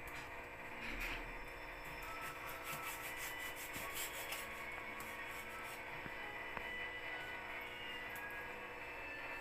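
A knife cuts through fish on a plastic cutting board.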